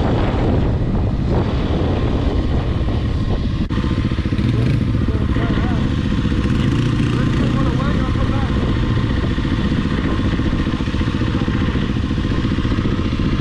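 A dirt bike engine putters and revs up close.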